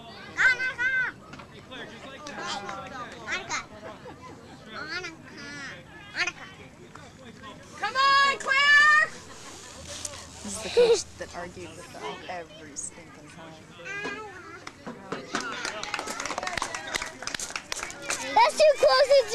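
Young women talk and shout with animation close by.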